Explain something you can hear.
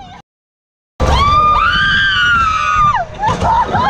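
A young woman cries out in a long, loud, wavering shriek close by.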